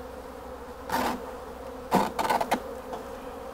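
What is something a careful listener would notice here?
A wooden box knocks a few times.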